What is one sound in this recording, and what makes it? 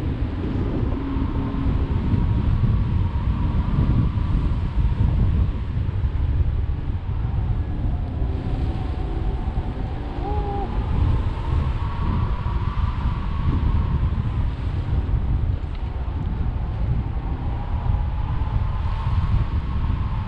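A man talks faintly through the wind.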